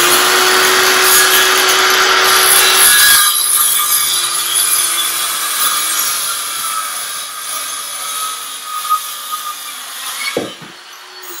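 A circular saw whines as it cuts through wood.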